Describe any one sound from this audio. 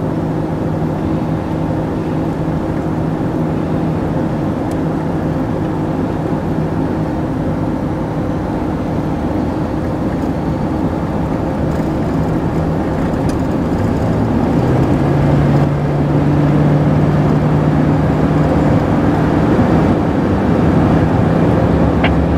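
A car's engine and tyres hum steadily on the road, heard from inside the car.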